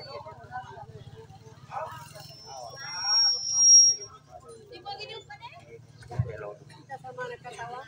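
A woman sings into a microphone through loudspeakers.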